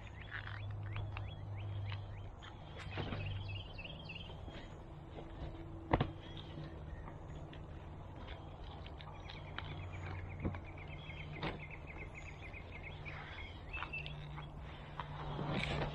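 Hands pat and press loose soil with soft thuds.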